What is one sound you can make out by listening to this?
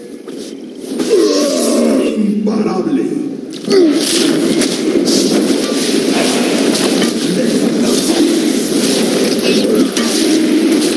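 Video game combat effects clash and crackle.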